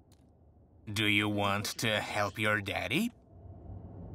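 A middle-aged man speaks into a phone.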